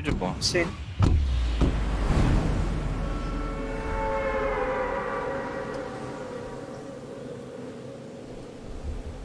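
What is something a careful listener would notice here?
Wind rushes loudly during a freefall, then slowly eases.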